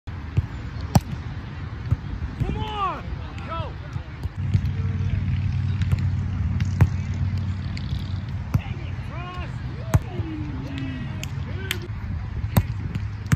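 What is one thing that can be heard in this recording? A volleyball thumps off players' hands and forearms.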